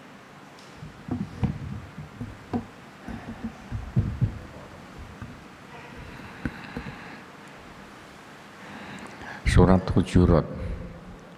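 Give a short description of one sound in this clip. An elderly man speaks calmly into a microphone, reading out.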